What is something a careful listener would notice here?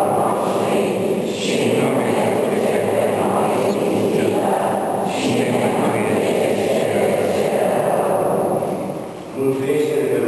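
Men chant together in an echoing hall.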